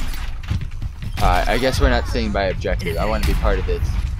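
A gun fires rapid shots with loud bangs.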